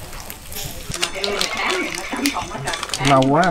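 Beer pours and fizzes into a glass.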